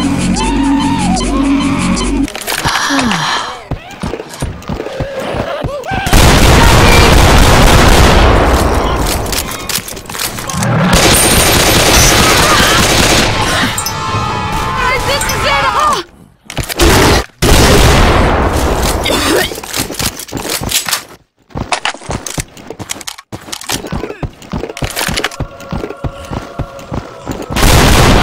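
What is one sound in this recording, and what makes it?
Shotgun blasts ring out in quick bursts.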